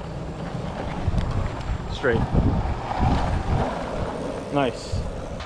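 Skateboard wheels roll and rumble over asphalt.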